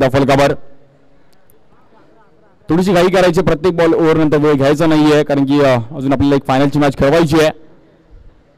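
Young men call out to one another outdoors.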